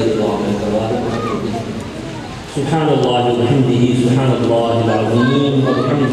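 A man chants in a drawn-out, melodic voice through a loudspeaker microphone.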